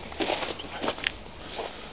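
Footsteps crunch on icy snow.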